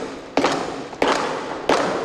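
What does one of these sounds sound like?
A hand drum is struck in a steady, ringing beat.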